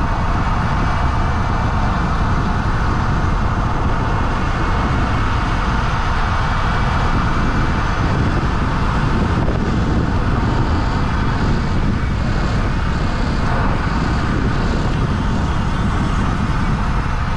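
Tyres roll steadily over smooth asphalt.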